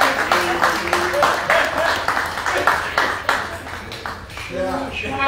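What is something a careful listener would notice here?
A small crowd applauds indoors.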